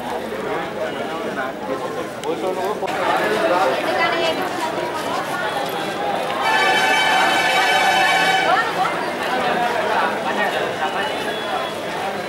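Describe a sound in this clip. A crowd of women chatter nearby outdoors.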